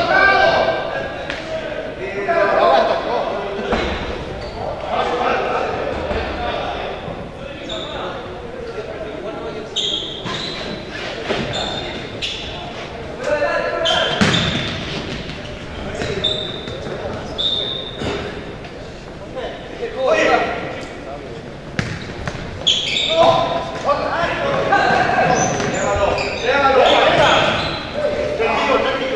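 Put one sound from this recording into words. Men shout to each other in an echoing hall.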